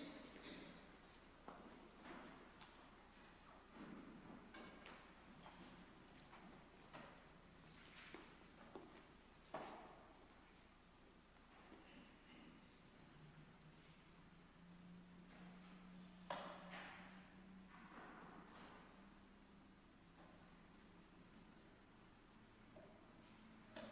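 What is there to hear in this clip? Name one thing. A man speaks quietly in a large echoing hall.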